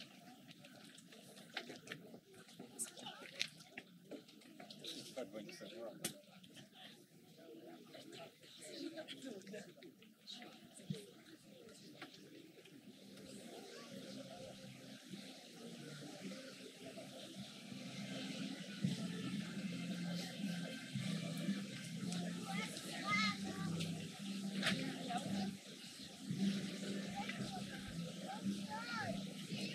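A crowd of people murmurs and chats outdoors.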